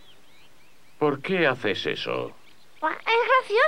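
A man speaks with animation in a cartoon voice.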